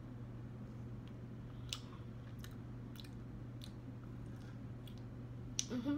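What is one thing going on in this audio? A young woman chews food with her mouth close to a microphone.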